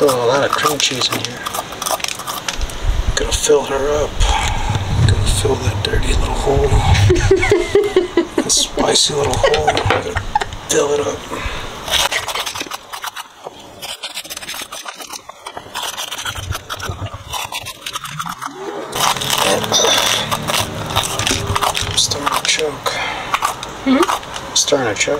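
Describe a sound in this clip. A small metal tool scrapes inside a hollow pepper.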